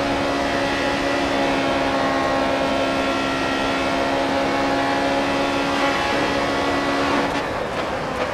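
A racing car engine screams steadily at high speed.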